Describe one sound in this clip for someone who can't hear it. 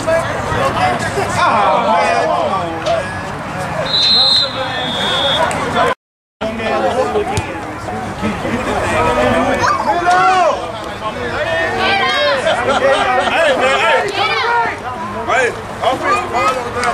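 A crowd of spectators cheers and shouts loudly nearby.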